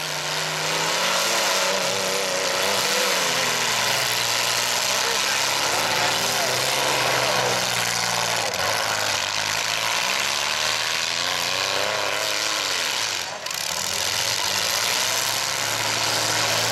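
Engines roar and rev loudly.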